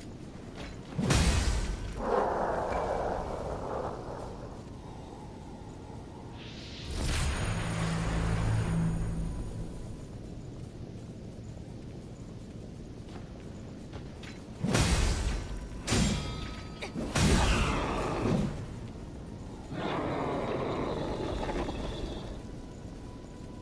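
A heavy blade swings and slashes with loud impacts.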